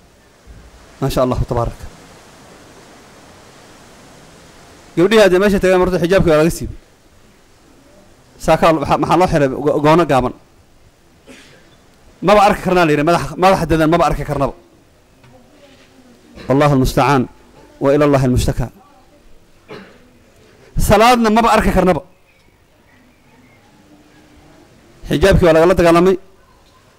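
A middle-aged man speaks emphatically into a microphone in short bursts with pauses.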